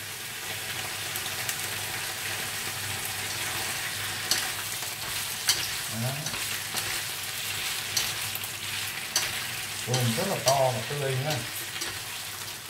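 Shrimp sizzle in hot oil in a frying pan.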